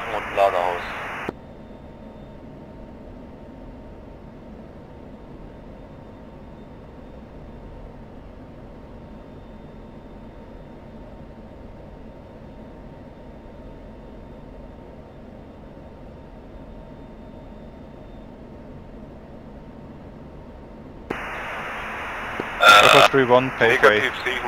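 A jet engine drones with a steady low rumble.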